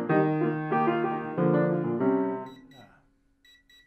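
A grand piano plays loud, full chords.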